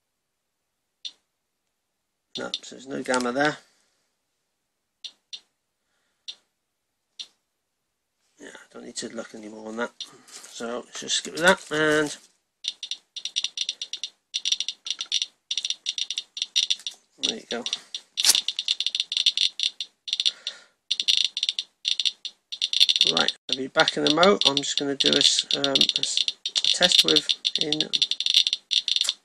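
A radiation counter clicks, slowly at first and then rapidly and steadily faster.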